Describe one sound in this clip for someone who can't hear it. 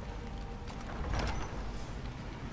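A heavy iron door grinds and creaks open.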